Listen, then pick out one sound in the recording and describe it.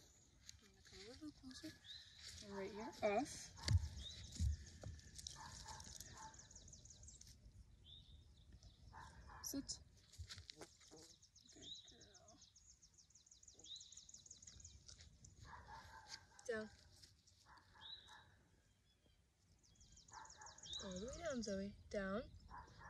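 A young woman talks calmly to a dog nearby.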